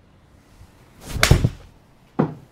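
A golf club swishes through the air and strikes a ball with a sharp crack.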